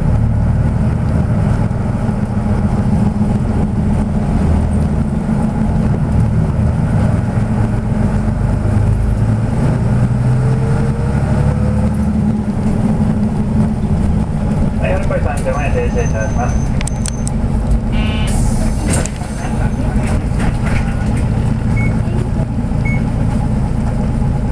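A steady low rumble of road noise and wind fills a moving vehicle on a highway.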